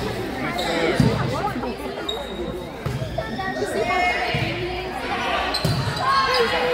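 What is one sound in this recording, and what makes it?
A volleyball is struck in a large echoing gym.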